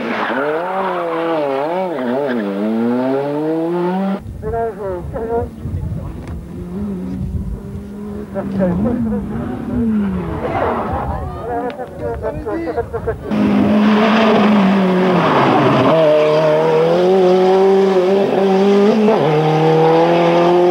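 A rally car engine revs hard, rising and falling in pitch.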